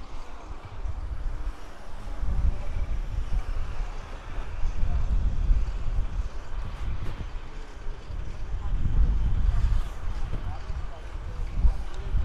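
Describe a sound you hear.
A motorbike engine drones past.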